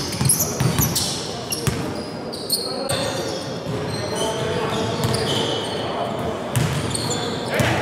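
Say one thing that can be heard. A basketball bounces on a wooden court in an echoing hall.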